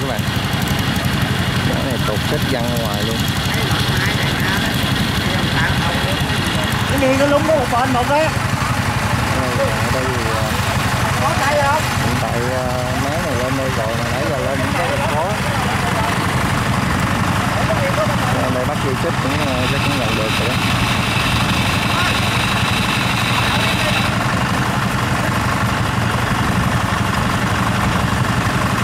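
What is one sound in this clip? A machine engine runs with a steady low hum.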